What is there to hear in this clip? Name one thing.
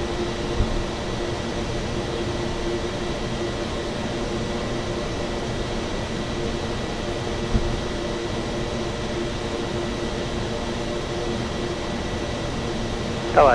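Wheels rumble and bump over a runway.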